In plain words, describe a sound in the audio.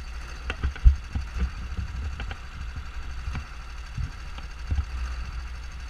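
A kart's frame knocks and rattles over bumps in the track.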